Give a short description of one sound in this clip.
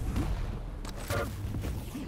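A futuristic gun fires rapid zapping shots.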